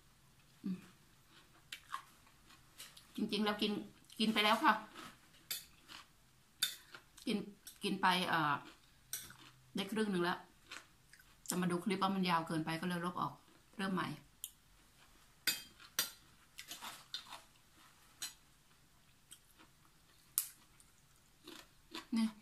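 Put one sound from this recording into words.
Cutlery clinks against a glass bowl.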